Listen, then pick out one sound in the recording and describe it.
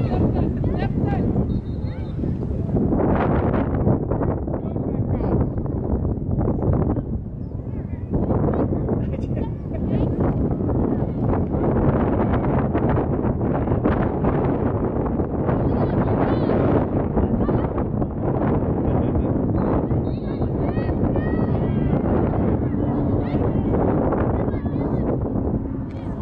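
Young players shout to one another from across an open field.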